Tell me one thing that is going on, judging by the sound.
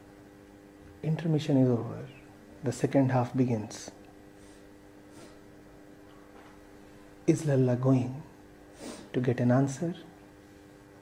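A middle-aged man speaks calmly into a close microphone, in short bursts with pauses.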